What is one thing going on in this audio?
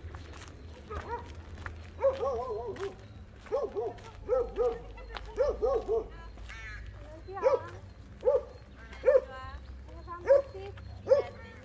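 A woman calls out in a sing-song voice nearby.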